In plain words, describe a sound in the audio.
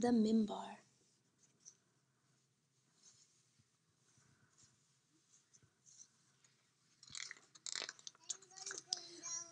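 Pages of a book rustle as they turn.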